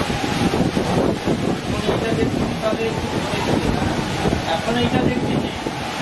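Strong gusting wind roars and thrashes through palm fronds.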